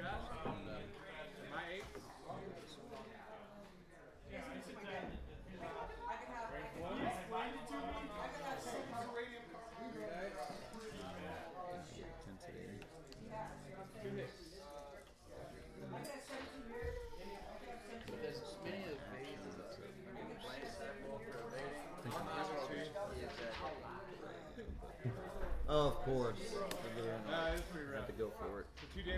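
Plastic game pieces tap and slide on a table.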